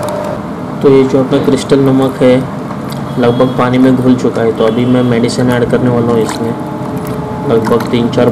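Water sloshes and splashes as a hand stirs it in a bowl.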